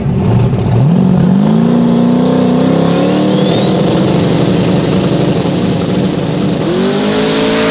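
A loud race car engine idles and revs hard nearby.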